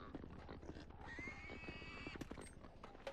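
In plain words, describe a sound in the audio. Pigs squeal and grunt nearby.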